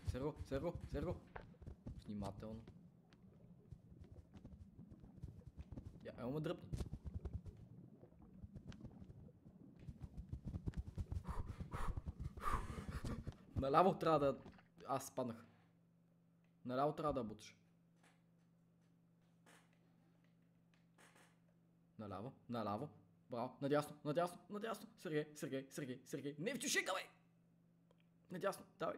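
A young man talks with animation into a microphone, close by.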